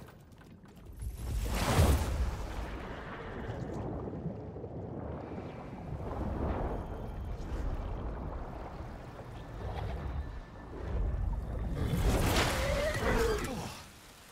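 Water rushes and bubbles loudly.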